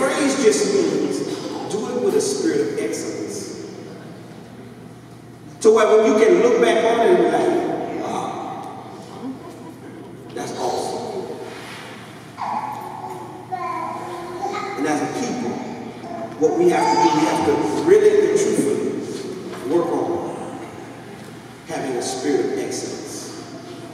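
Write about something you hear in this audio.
A man preaches with animation into a microphone, heard through loudspeakers in an echoing hall.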